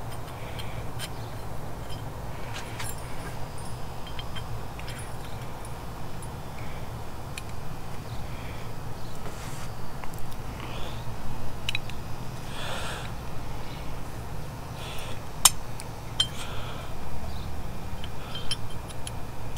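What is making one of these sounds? Small metal tool parts click and tap in someone's hands.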